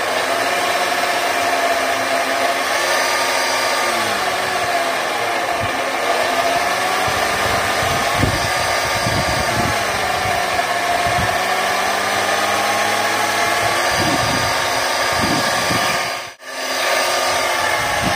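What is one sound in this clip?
An electric bench grinder runs with a steady whine.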